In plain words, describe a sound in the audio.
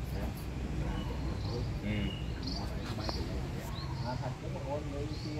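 Several men talk casually nearby, outdoors.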